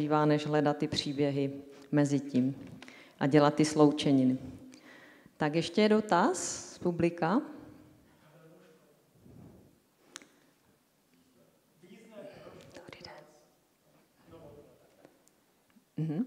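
A woman speaks calmly into a microphone, heard through a loudspeaker in an echoing room.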